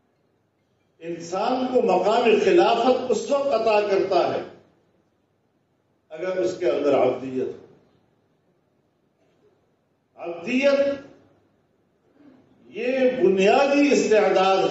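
An elderly man speaks into a microphone in a slow, chanting voice.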